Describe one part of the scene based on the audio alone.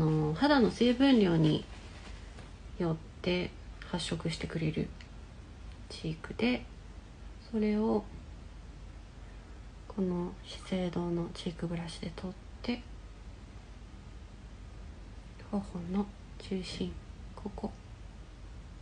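A young woman talks calmly and close to the microphone, in short bursts.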